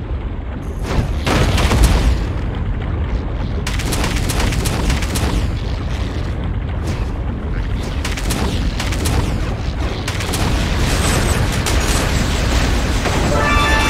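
Explosions boom and burst.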